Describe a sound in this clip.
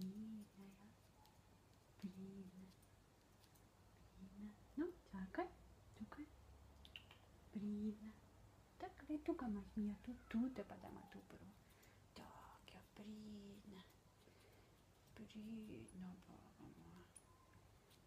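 A young woman talks softly and gently close by.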